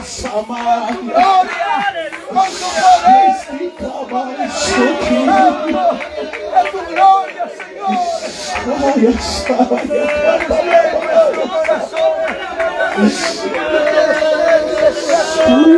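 A man sings loudly through a microphone and loudspeaker outdoors.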